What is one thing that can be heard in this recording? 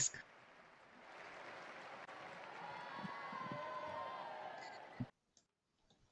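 A large crowd cheers and claps outdoors.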